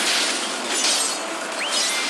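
A sword slashes with sharp swooshes.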